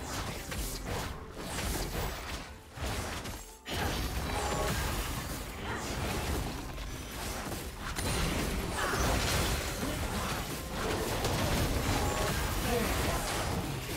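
Weapons strike with sharp hits.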